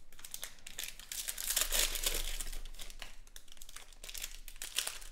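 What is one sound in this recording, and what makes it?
Foil wrappers crinkle and tear as hands rip open card packs.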